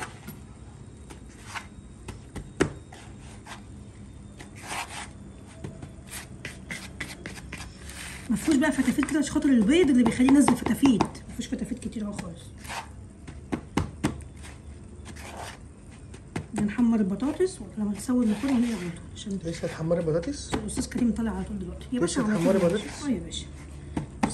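Fingers pat and press breadcrumbs in a plastic bowl with soft rustles.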